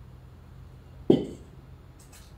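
A metal gas tank clanks on pavement outdoors.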